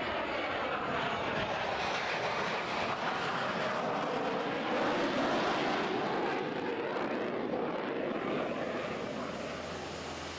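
A jet engine roars as an aircraft passes.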